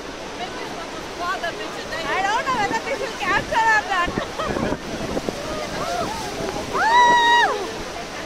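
Rough water churns and roars close by.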